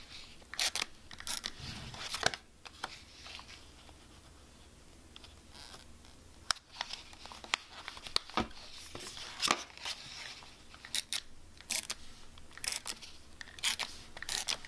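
A small plastic tape dispenser clicks and rolls against paper.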